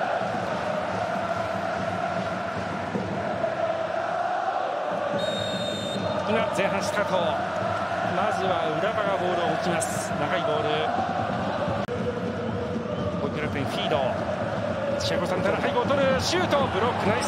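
A large stadium crowd cheers and chants steadily.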